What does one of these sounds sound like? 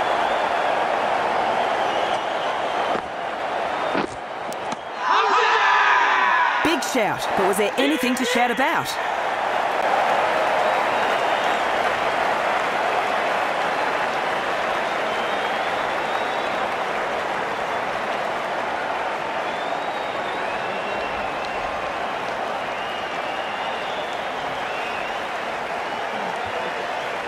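A large crowd roars and cheers throughout.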